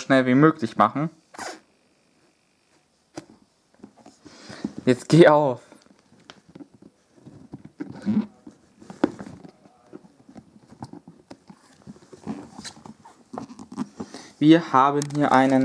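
A cardboard box scrapes and knocks softly as hands handle it.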